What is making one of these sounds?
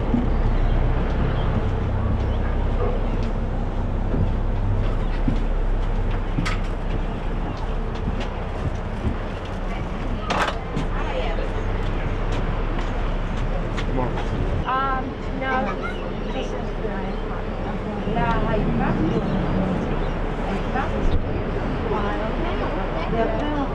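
Water laps and splashes against a boat's hull.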